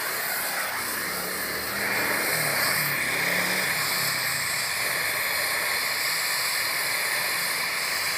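A gas torch flame roars and hisses steadily.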